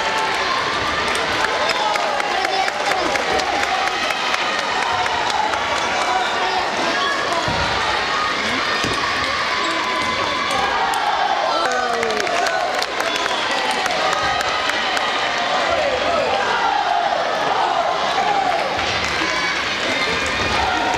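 A crowd of children and adults chatters throughout a large echoing hall.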